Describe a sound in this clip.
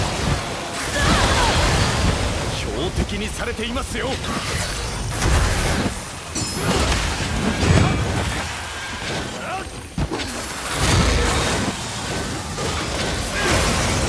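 Explosions burst and crackle.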